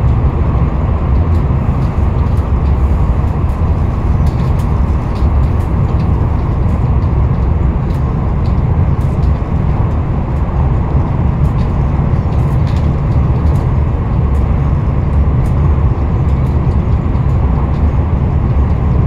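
A vehicle rumbles steadily as it drives along.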